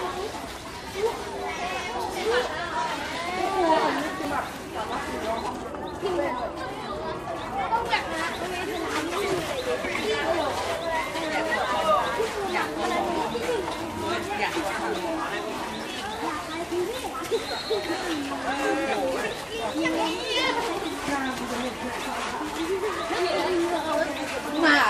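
Many boys chatter and call out close by, outdoors.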